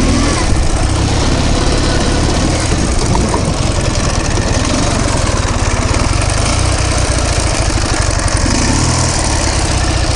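A motorcycle engine putters loudly and steadily close by.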